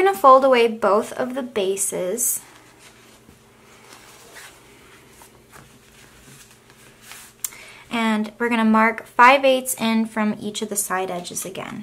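Hands rustle softly as they fold and smooth a piece of fabric.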